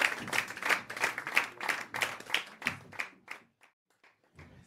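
An audience claps in steady rhythm.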